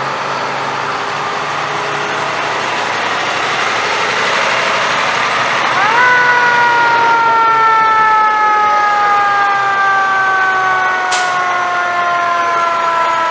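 Heavy truck engines rumble as the trucks roll slowly past.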